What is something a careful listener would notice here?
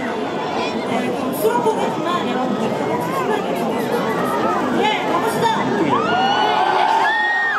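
A large crowd cheers and screams loudly.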